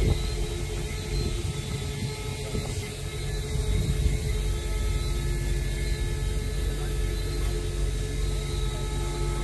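Strong wind blows and rumbles outdoors.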